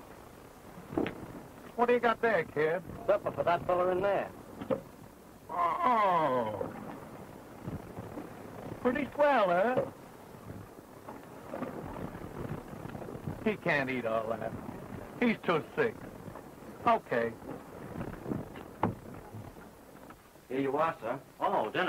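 A man answers calmly, close by.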